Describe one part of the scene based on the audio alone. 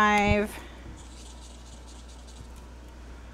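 A marker squeaks softly across paper.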